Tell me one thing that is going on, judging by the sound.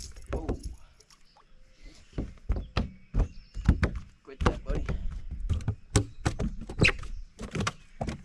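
A fishing reel clicks and whirs as line is reeled in.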